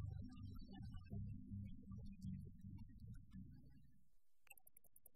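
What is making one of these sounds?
An accordion plays along.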